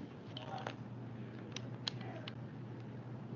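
Small clicks and knocks of a phone handset being picked up.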